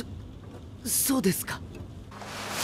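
A young man speaks in a strained, shaky voice close by.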